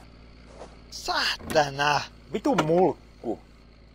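A car boot latch clicks and the lid swings open.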